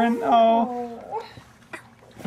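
A small child laughs close by.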